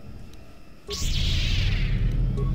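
An energy blade hums and crackles loudly.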